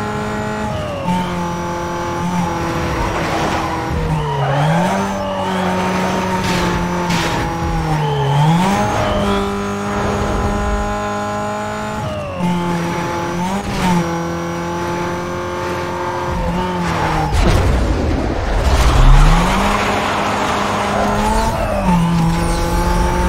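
A racing car engine drops and climbs in pitch as gears shift.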